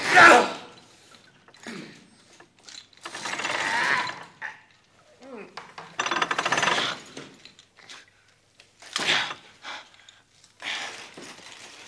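A man strains and grunts.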